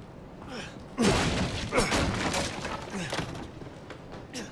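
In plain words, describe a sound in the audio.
A wooden crate crashes and splinters nearby.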